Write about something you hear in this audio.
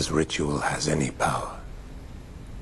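An elderly man speaks in a low, earnest voice close by.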